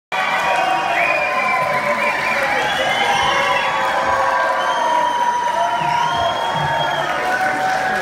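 A band plays music loudly in a large echoing hall, heard from far back in the audience.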